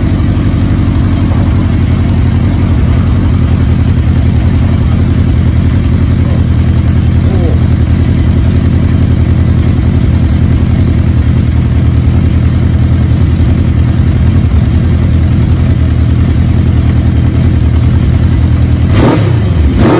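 An inline-four motorcycle engine idles with a low, lumpy burble.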